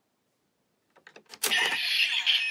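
A plastic lever clicks into place.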